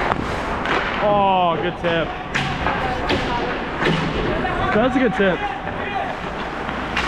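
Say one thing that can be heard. Young players shout in a large echoing rink.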